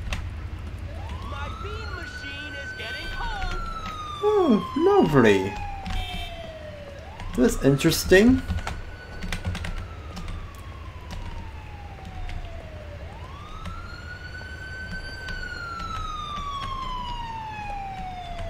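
A police siren wails in rising and falling sweeps.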